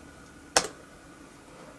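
A finger taps a laptop key with a sharp click.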